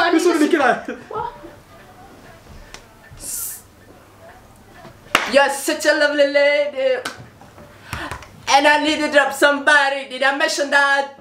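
A young man sings loudly and with animation close by.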